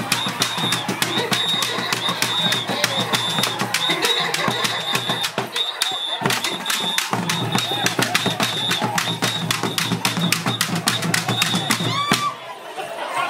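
Drums beat a fast, steady rhythm.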